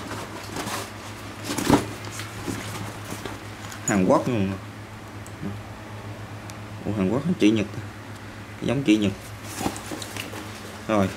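Fabric of a bag rustles and crinkles as hands handle it.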